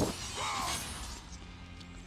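Flames burst with a roar.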